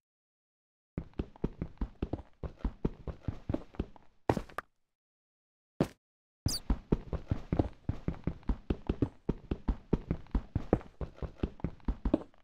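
A pickaxe chips rapidly at stone and gravel.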